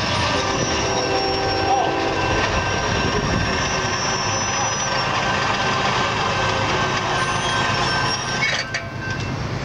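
A railroad crossing bell rings.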